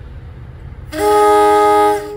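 A train horn blares loudly and close.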